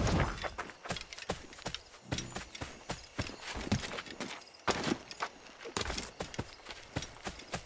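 Footsteps thud and rustle quickly through grass.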